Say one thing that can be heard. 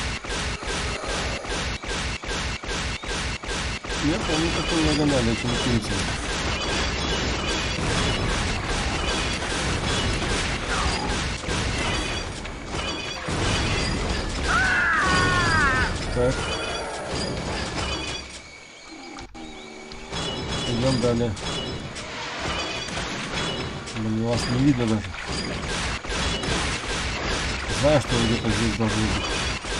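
Laser blasts fire in short bursts.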